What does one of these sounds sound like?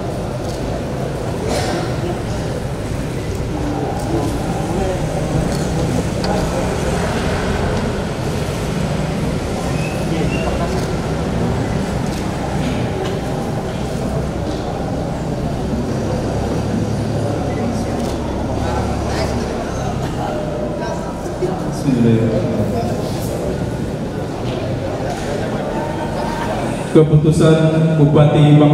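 A man reads out steadily into a microphone, in a room with a slight echo.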